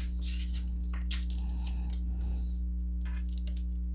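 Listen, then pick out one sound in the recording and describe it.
A card is laid down on a tabletop with a soft tap.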